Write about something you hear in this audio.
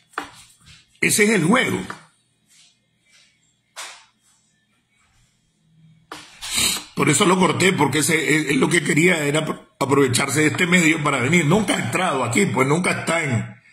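A middle-aged man speaks with animation close to a phone microphone.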